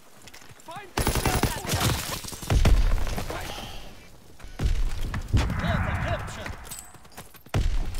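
Gunfire rattles in quick bursts.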